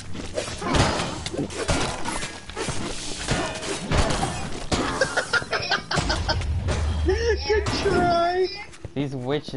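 Blows and blasts crash rapidly in a fast fight.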